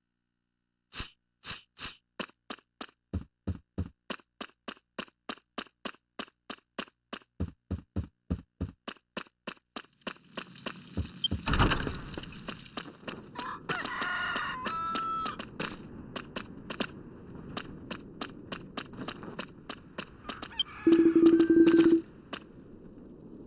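Footsteps tap quickly and evenly.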